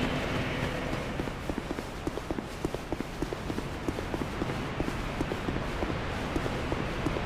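Footsteps run quickly over leaves and stone.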